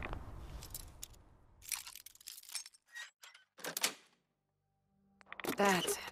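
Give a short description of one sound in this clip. A metal lock pick scrapes and clicks inside a lock.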